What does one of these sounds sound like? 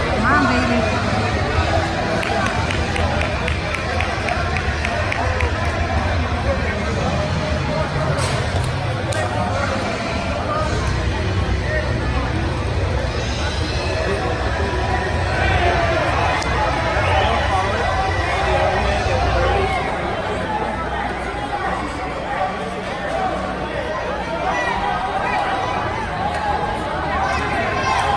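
A crowd of spectators murmurs and shouts in a large echoing hall.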